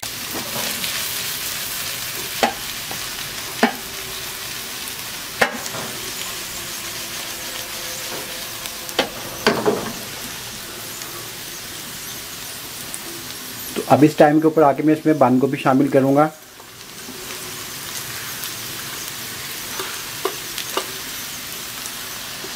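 Vegetables sizzle in a frying pan.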